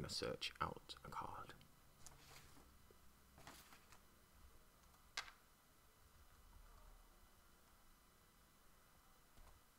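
A deck of playing cards is shuffled by hand.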